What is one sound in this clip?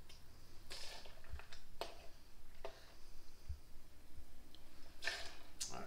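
Liquid pours and gurgles from a bottle into a glass.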